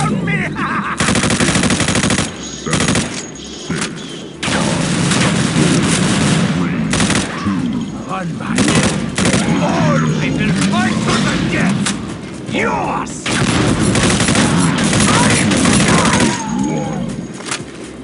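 Gunfire bursts loudly and repeatedly.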